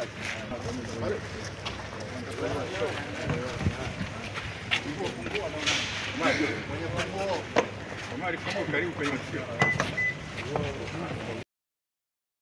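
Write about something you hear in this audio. A man speaks calmly close by, with other men's voices around.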